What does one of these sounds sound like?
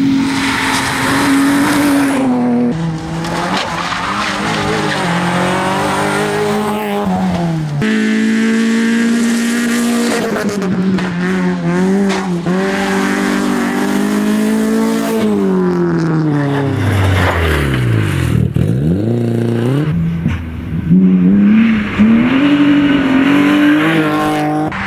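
Rally car engines roar loudly as they race past, revving up and down through the gears.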